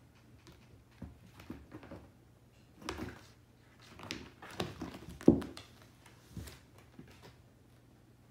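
A cat scratches and scrabbles at a carpeted scratcher.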